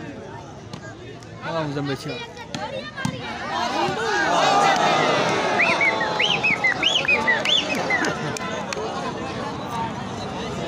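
A large outdoor crowd of men cheers and shouts loudly.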